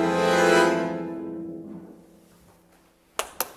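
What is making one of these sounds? A harp chord rings out and slowly fades in an echoing hall.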